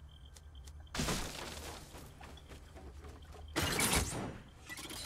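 Wooden walls are built with quick clattering bursts.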